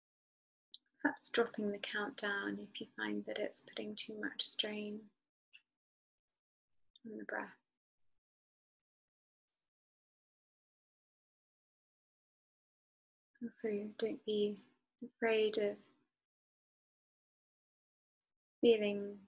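A woman speaks calmly and softly into a close microphone, with long pauses.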